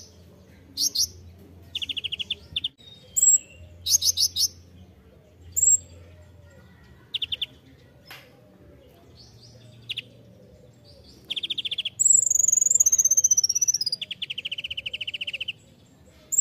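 A small songbird sings close by in sharp, rapid trills and chirps.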